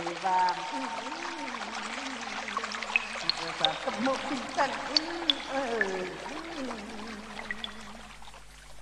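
Bamboo poles knock and clack together in quick beats.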